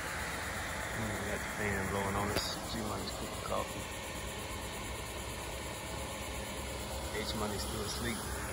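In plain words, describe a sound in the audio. A woman talks calmly nearby.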